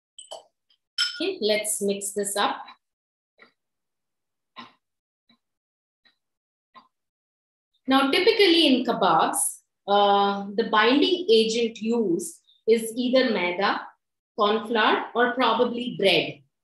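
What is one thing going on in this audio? A woman talks calmly close to a microphone.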